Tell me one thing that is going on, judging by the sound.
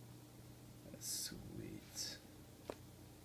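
A plastic card sleeve rustles and scrapes as it is handled.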